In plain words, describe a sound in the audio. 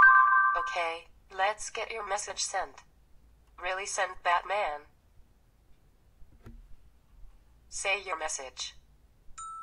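A synthetic woman's voice speaks from a phone loudspeaker.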